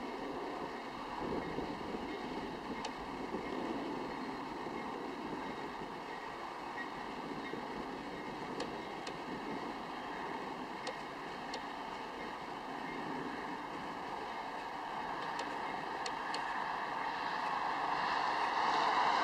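A freight train rumbles steadily along the tracks in the distance.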